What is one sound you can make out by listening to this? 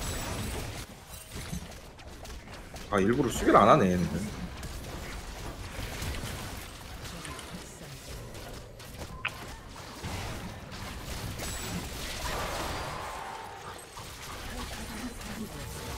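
Fantasy battle sound effects of spells and blows clash and crackle.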